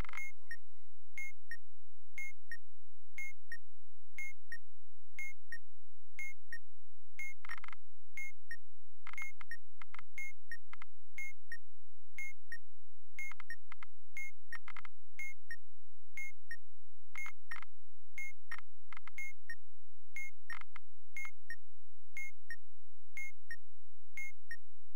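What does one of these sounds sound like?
A timer ticks steadily about once a second.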